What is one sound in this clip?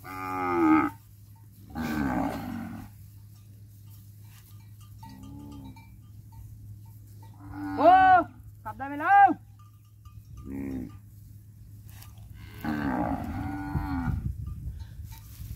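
Cows and calves moo loudly nearby, one after another.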